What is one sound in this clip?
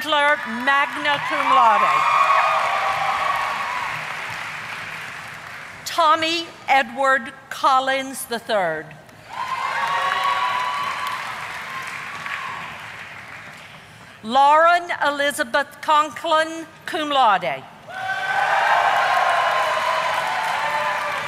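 An audience claps and cheers in a large echoing hall.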